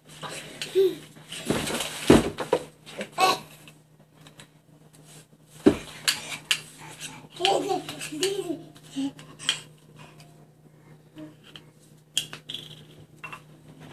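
Small hands pat on a hard floor as a baby crawls.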